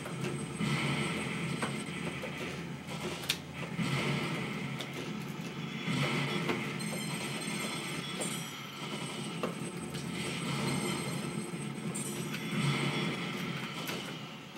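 Arcade game explosions boom through a small loudspeaker.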